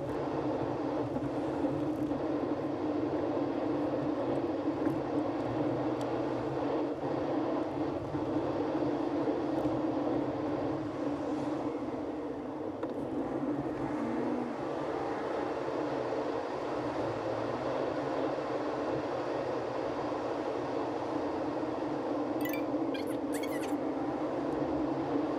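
A car engine hums steadily from inside the moving car.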